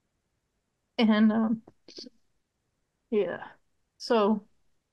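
A middle-aged woman speaks in short bursts over an online call.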